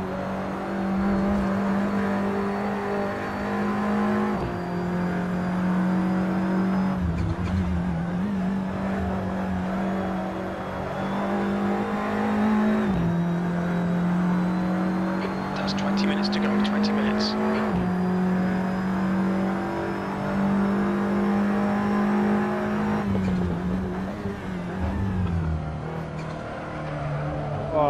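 A racing car engine roars loudly, its pitch climbing and dropping sharply with each gear change.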